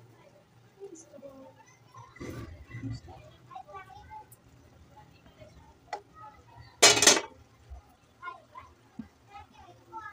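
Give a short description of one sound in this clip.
A thick stew bubbles gently in a pot.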